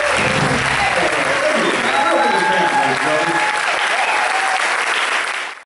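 A man sings loudly into a microphone on a stage.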